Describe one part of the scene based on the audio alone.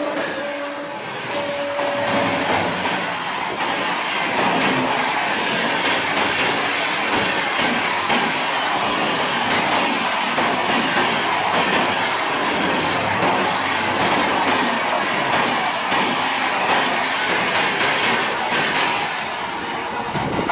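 A train rushes past at speed with a loud rolling roar.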